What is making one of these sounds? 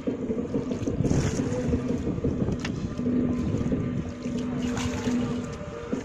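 Water splashes and gushes as a bucket is emptied.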